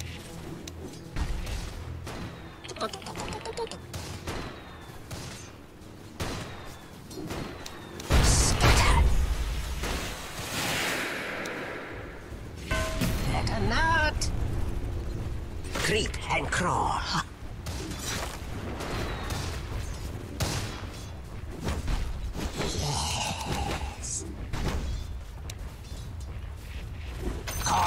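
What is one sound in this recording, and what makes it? Game battle effects clash, crackle and whoosh in quick bursts.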